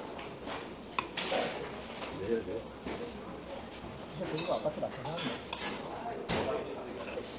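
A metal spoon clinks against a stone bowl.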